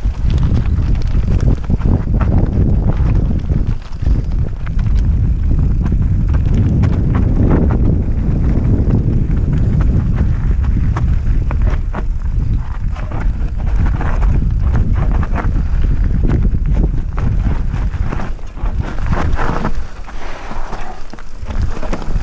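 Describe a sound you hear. Wind roars loudly past a helmet.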